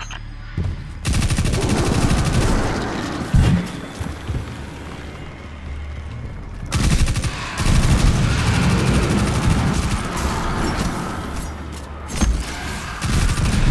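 Guns fire in rapid bursts, with loud blasts and explosions.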